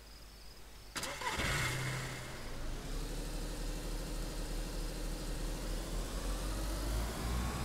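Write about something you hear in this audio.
A car engine starts and runs, revving up.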